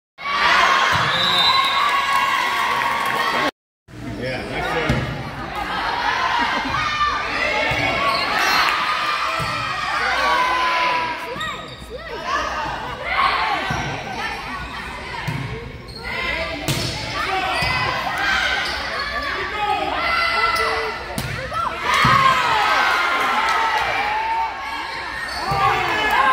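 Young girls shout and cheer in an echoing gym.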